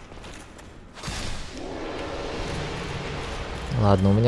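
A knight crumbles away with a rushing hiss.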